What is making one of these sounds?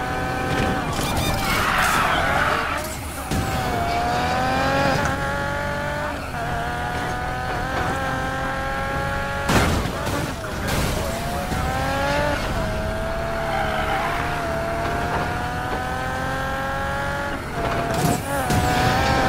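Tyres screech as a car drifts around a corner.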